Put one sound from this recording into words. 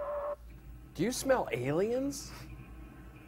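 A man speaks briefly.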